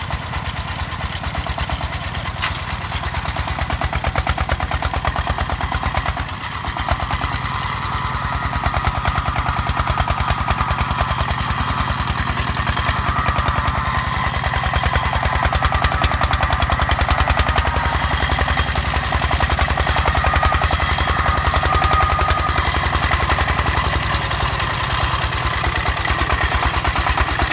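A single-cylinder tractor engine chugs loudly and rapidly close by.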